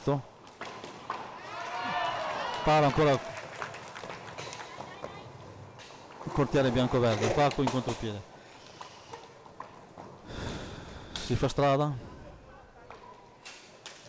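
Hockey sticks clack against a ball.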